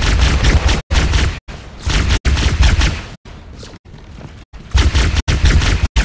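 Plasma weapons fire in rapid bursts.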